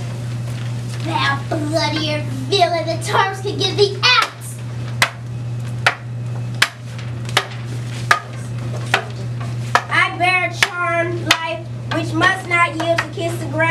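A child speaks loudly and with animation.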